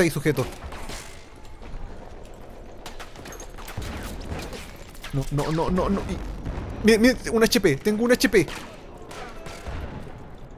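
Gunshots crack in quick bursts.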